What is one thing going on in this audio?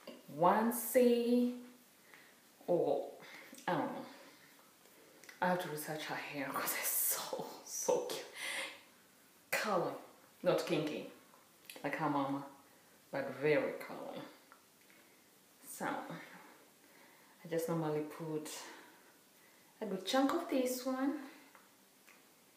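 A young woman talks warmly and calmly to a listener close by, between short pauses.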